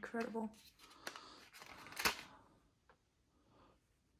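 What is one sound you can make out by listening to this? A plastic figure is lifted out of a plastic tray with a click.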